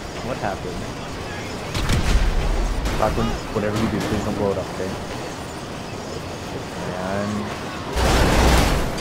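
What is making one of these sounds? A tram rumbles along its tracks.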